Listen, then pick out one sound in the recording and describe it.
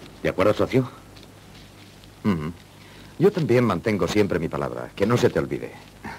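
A second man answers calmly nearby.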